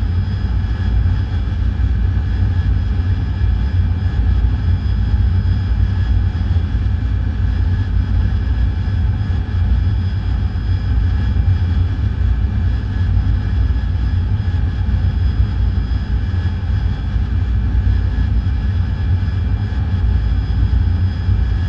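Steady high electronic tones hum.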